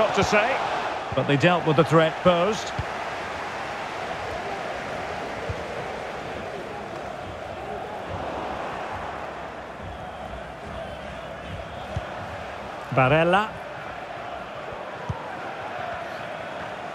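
A stadium crowd murmurs and roars steadily.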